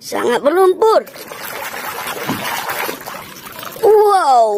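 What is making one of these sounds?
Water splashes as a hand stirs it.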